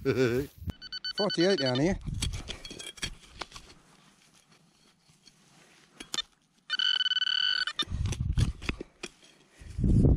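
Dry straw rustles and crackles as hands dig through it.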